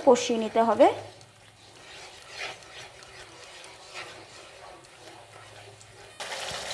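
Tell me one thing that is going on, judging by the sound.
A spatula scrapes and stirs a thick paste in a frying pan.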